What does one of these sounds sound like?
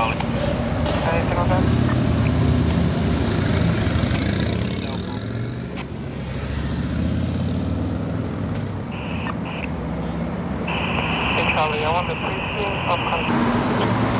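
Police motorcycle engines idle and rumble nearby.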